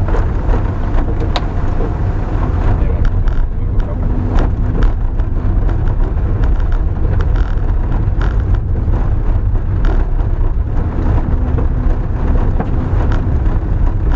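Tyres crunch and rattle over a bumpy gravel track.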